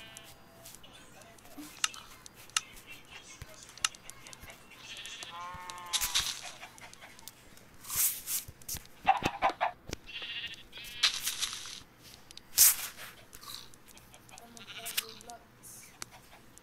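Chickens cluck nearby.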